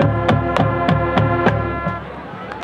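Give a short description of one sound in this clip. Drums strike in sharp beats.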